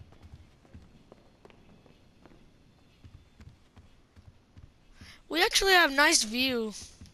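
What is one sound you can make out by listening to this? Footsteps run across a floor.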